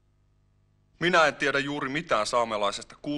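A man reads out slowly and clearly.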